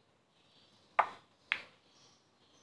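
Billiard balls clack sharply against each other.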